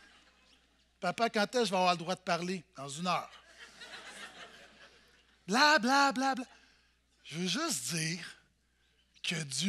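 A man speaks with animation through a microphone in a reverberant hall.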